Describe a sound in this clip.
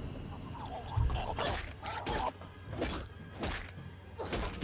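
A heavy metal wrench strikes a body again and again.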